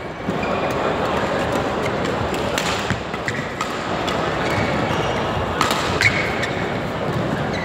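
Rackets strike a shuttlecock back and forth.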